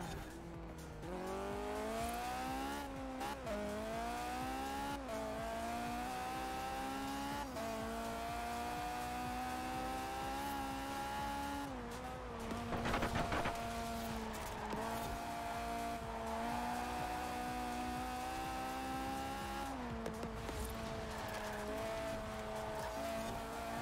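A car engine revs hard, rising in pitch and dropping at each gear change.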